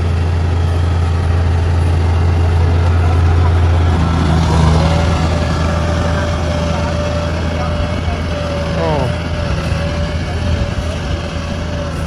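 A combine harvester engine rumbles steadily nearby and slowly moves away.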